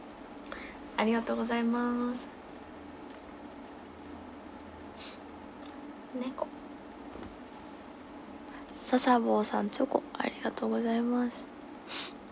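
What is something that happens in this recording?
A young woman speaks softly and playfully close to a microphone, in short bursts.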